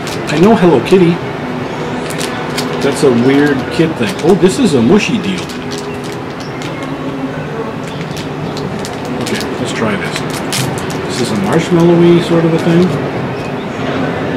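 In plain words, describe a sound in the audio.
Plastic wrapping crinkles as a wrapper is torn open.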